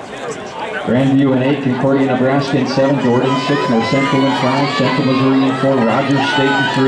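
Spectators cheer loudly as runners pass.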